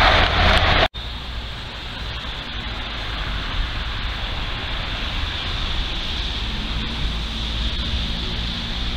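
Wind blows across the microphone outdoors.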